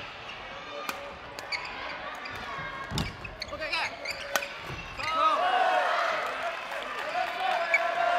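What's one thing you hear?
Rackets strike a shuttlecock with sharp pops.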